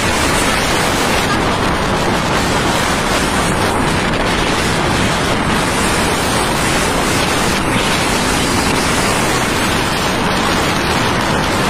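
Wind rushes loudly past the microphone.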